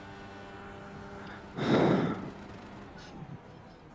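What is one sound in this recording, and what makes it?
A racing car engine drones at a steady pitch.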